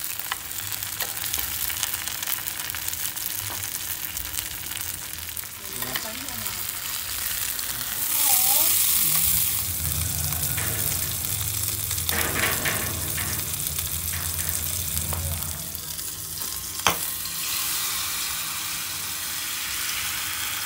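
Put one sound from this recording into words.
Oil sizzles and crackles in a hot pan.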